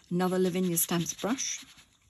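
A brush dabs softly on an ink pad.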